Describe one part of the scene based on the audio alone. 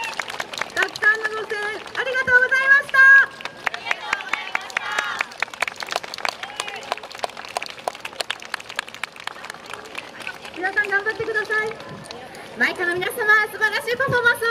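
A group of young women shout and chant together.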